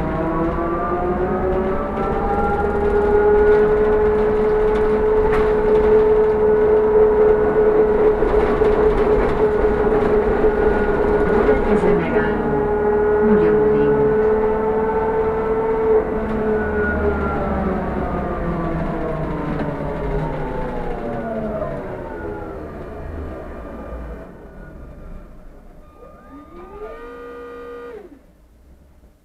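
A bus engine whines steadily, then drops in pitch as the bus slows down.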